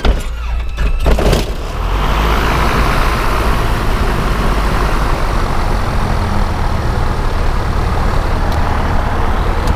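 A small plane's engine roars loudly and steadily from close by.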